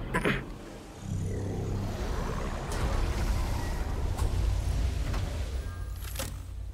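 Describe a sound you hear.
A low magical rumbling drone pulses steadily.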